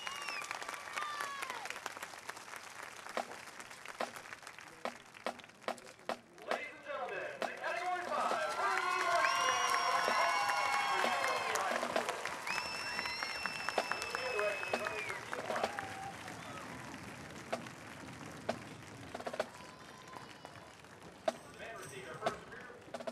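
Drums beat sharply in a marching rhythm.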